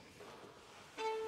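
A violin starts to play a note.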